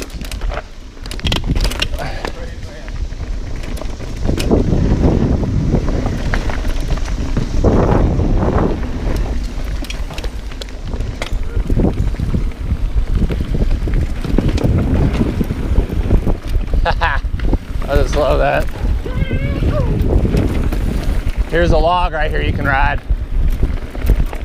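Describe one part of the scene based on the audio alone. Bike tyres rumble and rattle over a dirt trail.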